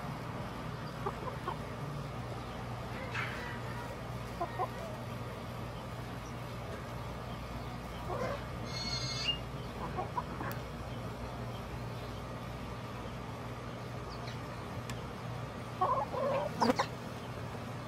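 Hens cluck softly now and then.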